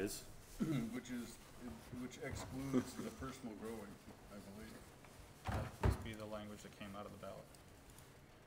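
A man speaks calmly into a microphone in a room.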